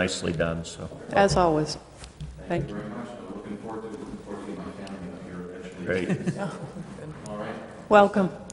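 A man speaks calmly in a quiet room with slight echo.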